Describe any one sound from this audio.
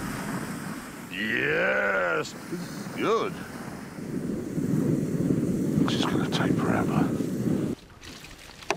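A pressurised spray hisses and rushes.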